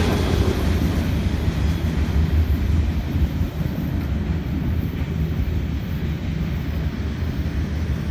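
A freight train rumbles away along the tracks, slowly fading.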